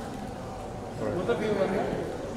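A woman talks brightly nearby.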